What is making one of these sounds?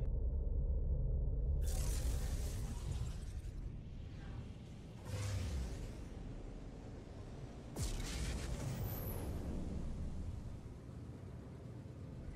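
A spaceship engine rumbles low and steadily.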